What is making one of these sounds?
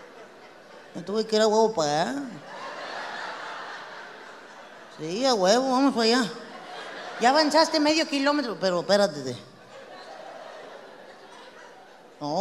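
A young woman speaks animatedly into a microphone, heard through a loudspeaker.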